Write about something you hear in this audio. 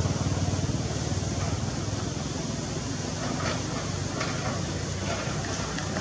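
Gravel and earth scrape and clatter in an excavator bucket.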